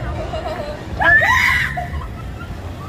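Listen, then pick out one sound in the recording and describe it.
A young woman screams in fright close by.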